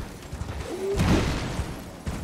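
A sword clashes against an enemy.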